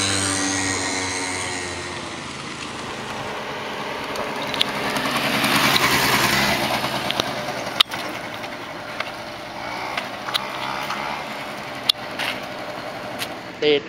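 A scooter engine hums as it rides past.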